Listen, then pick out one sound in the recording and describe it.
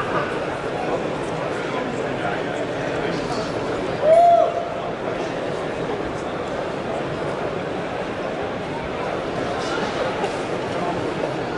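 A large crowd murmurs and cheers steadily in a big echoing hall.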